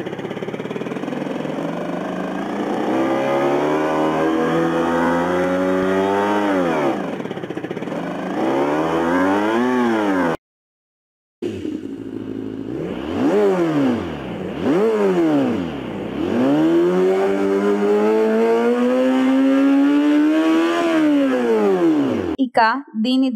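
A motorcycle engine hums and revs up and down in pitch.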